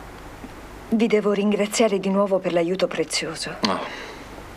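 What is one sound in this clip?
A young woman speaks softly and earnestly nearby.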